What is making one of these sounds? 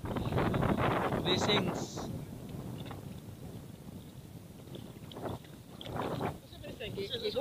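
Water splashes as people wade through it.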